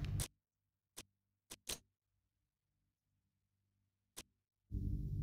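Short electronic clicks sound as menu buttons are pressed.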